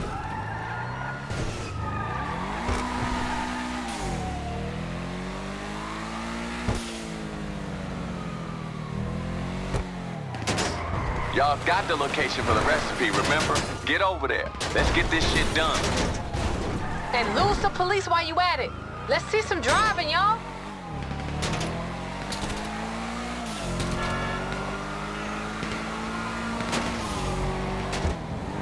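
A sports sedan's engine revs hard and shifts gears.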